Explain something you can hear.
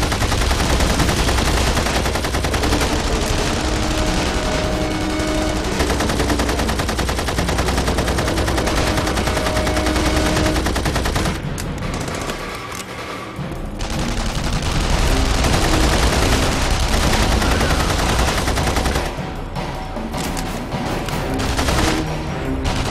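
A machine gun fires rapid bursts of shots.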